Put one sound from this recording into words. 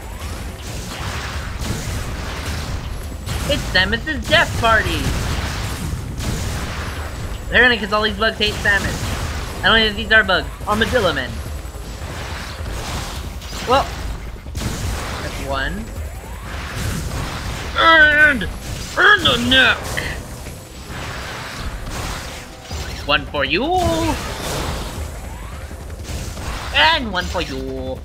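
Energy blasts fire in quick bursts.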